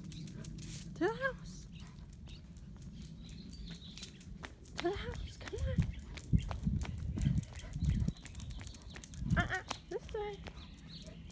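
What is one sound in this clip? A dog gives short, rising yelps.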